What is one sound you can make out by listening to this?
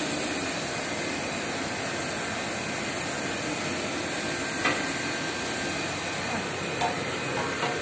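A machine hums steadily nearby.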